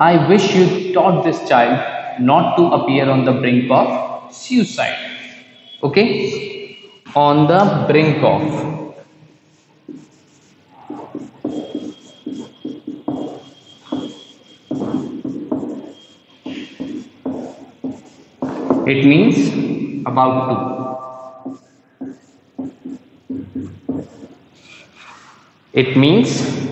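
A young man speaks clearly and steadily.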